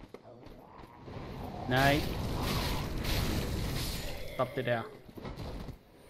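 A fiery blast roars.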